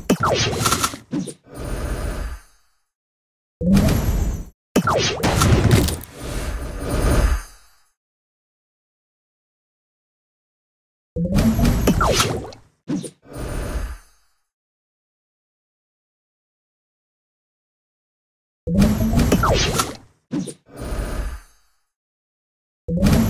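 Game sound effects chime and burst in short bouts as tiles clear.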